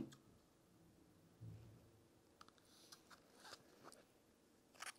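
A plastic cup crinkles and taps as it is handled.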